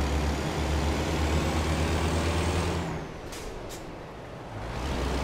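A heavy truck engine drones steadily, then eases off and picks up again.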